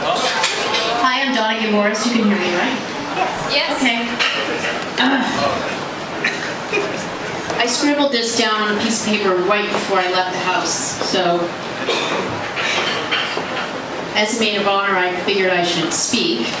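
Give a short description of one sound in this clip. A woman speaks with animation through a microphone and loudspeaker.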